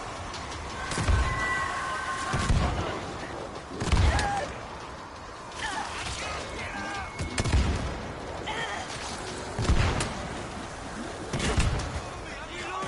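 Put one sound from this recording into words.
Heavy blows thud into bodies.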